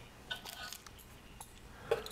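A metal utensil scrapes lightly against a metal tray.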